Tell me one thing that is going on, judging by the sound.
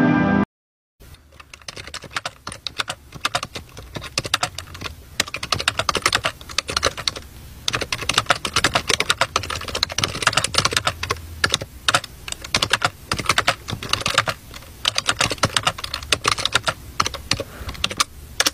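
Phone keyboard keys tap and click rapidly as someone types.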